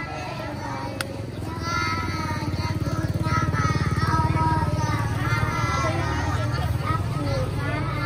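A young child speaks into a microphone.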